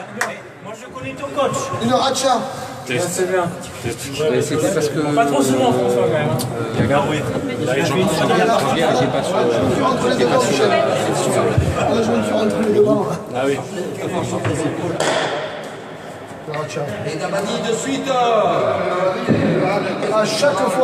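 Men talk with animation, echoing in a large hall.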